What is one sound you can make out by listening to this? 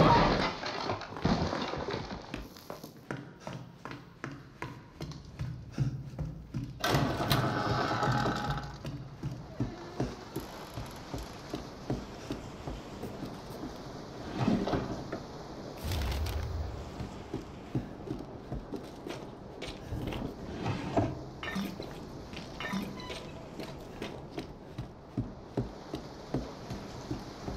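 Footsteps thud slowly on creaking wooden floorboards.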